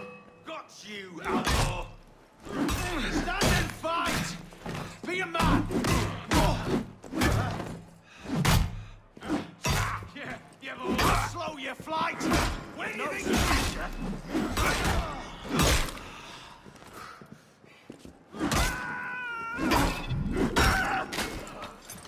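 Swords clash and strike repeatedly in a close fight.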